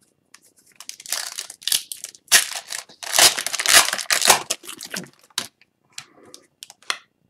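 A foil wrapper crinkles and tears as a card pack is opened.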